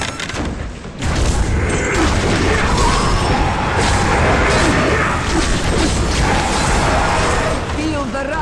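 Weapons clash and slash repeatedly in a fierce battle.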